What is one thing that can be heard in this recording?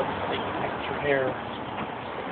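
An elderly man speaks briefly nearby.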